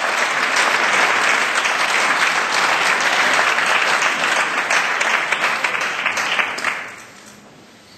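A crowd applauds loudly in a large hall, then the applause dies away.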